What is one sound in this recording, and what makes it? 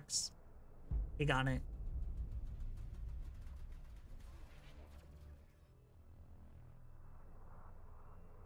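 A spaceship engine roars past with a deep rumble that slowly fades.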